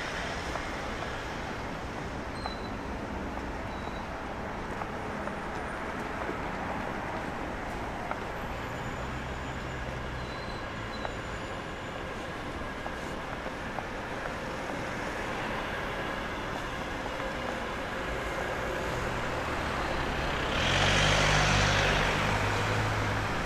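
City traffic hums steadily in the distance.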